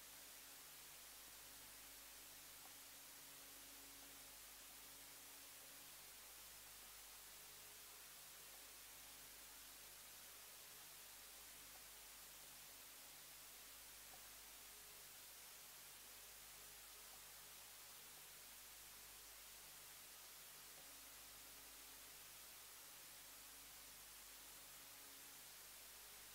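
A violin plays a slow melody.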